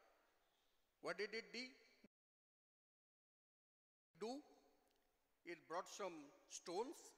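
A middle-aged man speaks with animation through a microphone in a reverberant hall.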